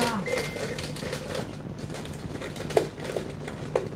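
A plastic bottle crinkles and taps as it is handled.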